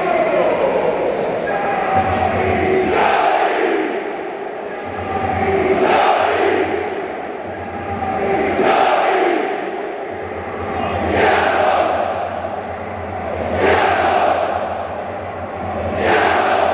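A huge crowd of fans chants and sings together in a large open stadium.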